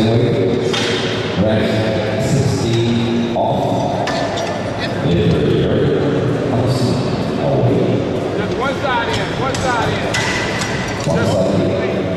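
Heavy metal weight plates clank as they are loaded onto a bar.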